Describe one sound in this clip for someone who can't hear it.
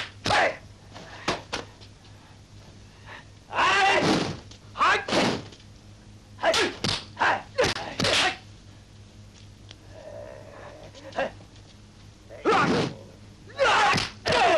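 Men shout fiercely in short bursts as they fight.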